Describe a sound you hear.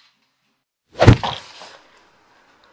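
A person lands with a heavy thud on a floor.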